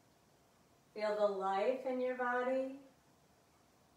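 A young woman speaks calmly and briefly, as if instructing.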